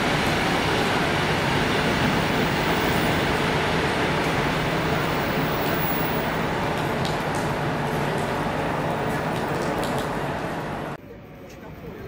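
A train's diesel engine rumbles loudly and steadily as the train rolls slowly past.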